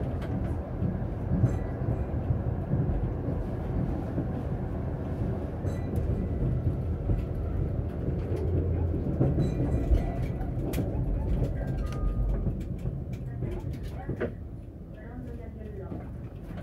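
A tram rumbles steadily along its rails, then quietens as it slows.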